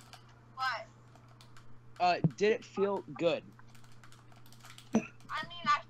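A teenage boy talks with animation over an online call.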